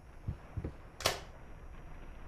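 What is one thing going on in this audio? A door handle clicks sharply.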